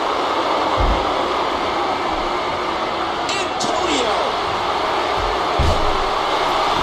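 Bodies slam heavily onto a wrestling mat with deep thuds.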